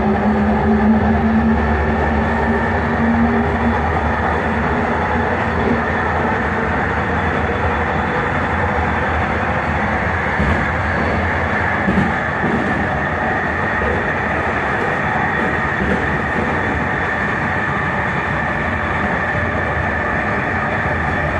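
A train rumbles and hums steadily as it travels along the tracks, heard from inside a carriage.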